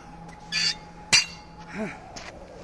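A barbell drops onto gravelly ground with a metallic clank.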